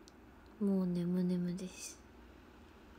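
A young woman speaks in a short, drawn-out phrase close to a phone microphone.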